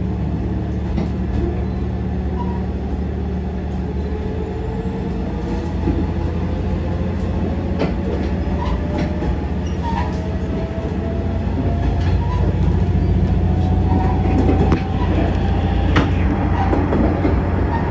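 A train's wheels click and knock over rail joints.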